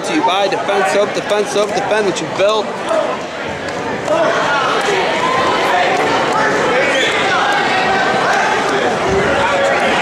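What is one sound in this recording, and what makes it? A man speaks loudly, announcing to a crowd.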